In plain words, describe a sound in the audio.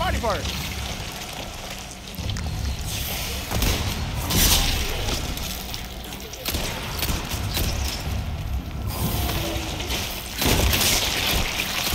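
A monster roars and snarls.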